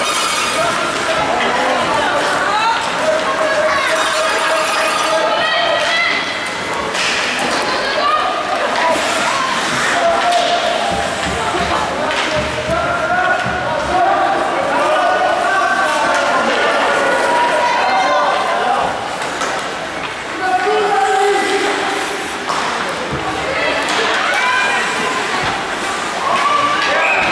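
Ice skates scrape and carve across ice.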